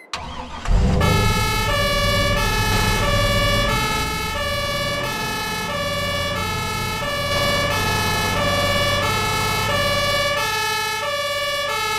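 An ambulance siren wails in a repeating two-tone pattern.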